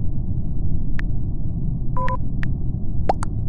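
Soft keyboard taps click one after another.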